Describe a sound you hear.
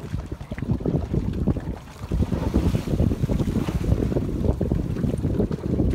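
A sail flaps and rustles as a boat rights itself.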